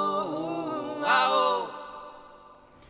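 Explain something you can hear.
A man sings a long held note through a microphone.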